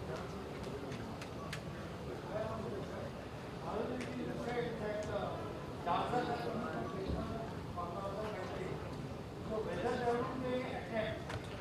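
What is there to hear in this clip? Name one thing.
A second man speaks into a microphone, heard through loudspeakers.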